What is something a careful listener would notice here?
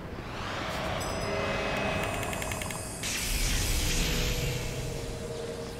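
A magical charge hums and shimmers, then bursts with a whoosh.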